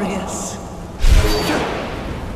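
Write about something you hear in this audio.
A heavy blade swings with a loud clang.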